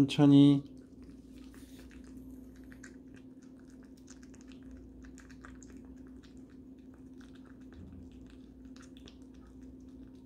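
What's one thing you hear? A small dog crunches dry food from a metal bowl.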